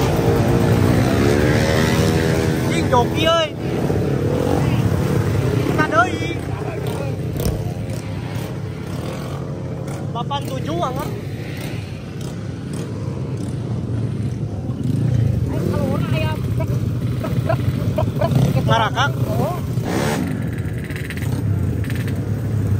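A motorcycle engine revs loudly.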